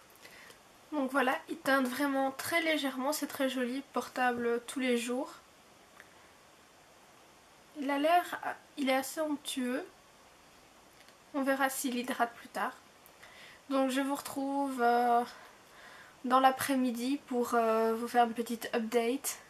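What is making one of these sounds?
A young woman talks calmly and close by, in short bursts with pauses.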